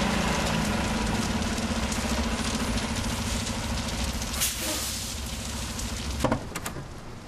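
A wrecked plane burns with a steady hiss and crackle.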